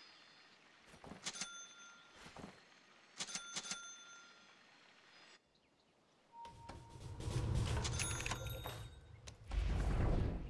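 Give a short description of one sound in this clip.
Short chiming game sound effects ring out.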